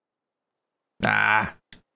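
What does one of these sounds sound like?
A man speaks briefly through a close microphone.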